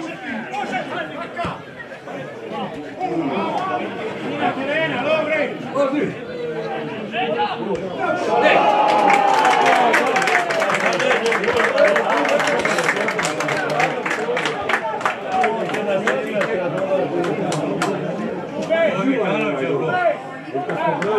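Spectators talk and shout nearby outdoors.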